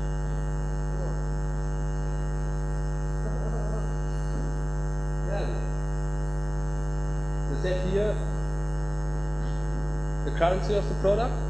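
A man speaks through a microphone in short phrases, with pauses.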